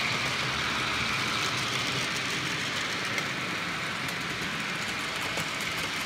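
A model train rumbles and clatters along its track.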